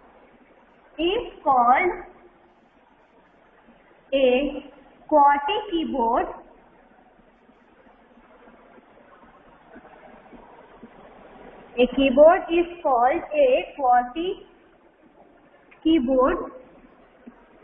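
A young woman speaks calmly and clearly, as if explaining to a class.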